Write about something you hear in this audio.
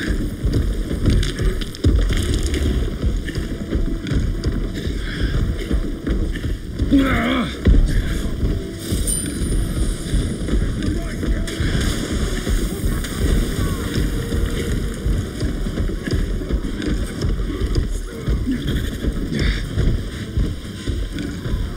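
Heavy footsteps of a large creature thud steadily on the ground.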